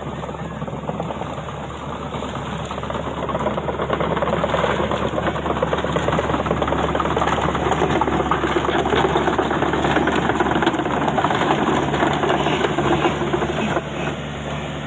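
The steel tracks of an excavator clank and squeak as it crawls over mud.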